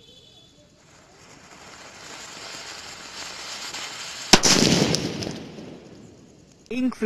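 A firework fountain hisses and crackles, growing louder.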